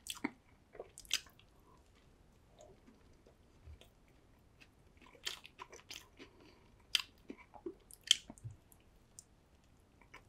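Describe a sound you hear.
A man bites into a burger with a crisp crunch.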